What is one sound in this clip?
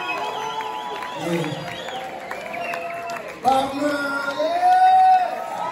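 A female singer sings through loudspeakers, with an echoing hall sound.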